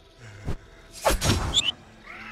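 A bright magical blast bursts loudly.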